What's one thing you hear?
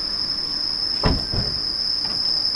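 A door on a kei truck camper thumps shut.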